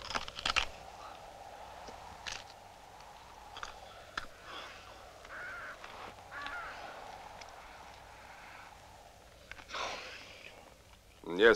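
A man breathes heavily and mutters.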